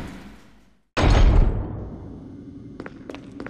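A heavy metal door slams with a loud boom.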